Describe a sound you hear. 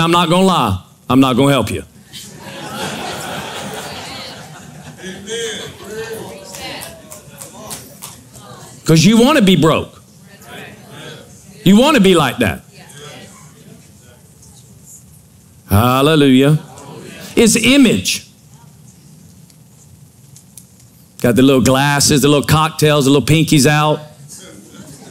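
A man speaks through a microphone in short, emphatic bursts with pauses between them.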